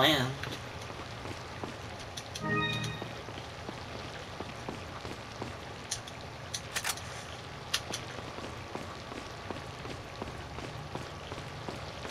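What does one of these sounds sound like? Footsteps tap steadily on a stone floor in an echoing hall.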